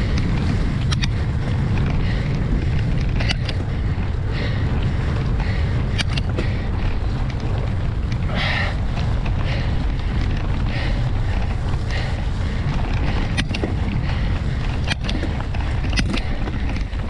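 A bicycle rattles and knocks over bumps in the trail.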